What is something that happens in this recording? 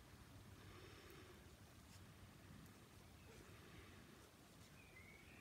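A cotton pad rustles softly between fingers.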